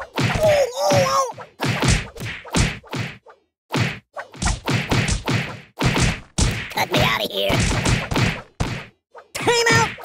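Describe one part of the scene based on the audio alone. A sword slashes and thuds against a ragdoll in rapid hits.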